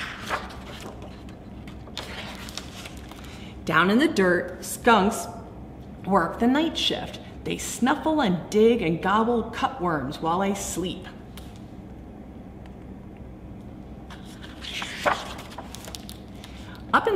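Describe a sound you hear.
Book pages rustle and turn.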